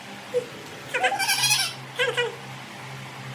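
A young child talks excitedly close by.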